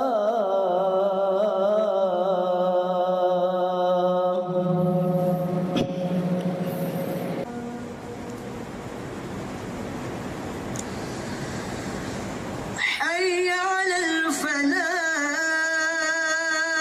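A man chants a long, melodic call through a microphone in a large echoing hall.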